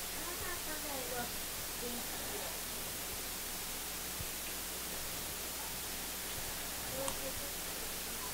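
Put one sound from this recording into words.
Water bubbles softly.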